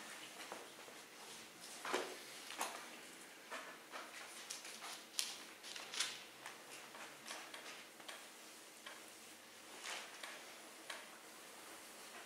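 An elderly man reads aloud quietly into a microphone.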